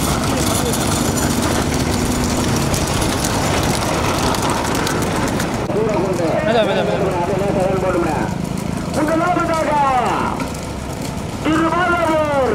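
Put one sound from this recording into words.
Cart wheels rumble and rattle on a paved road.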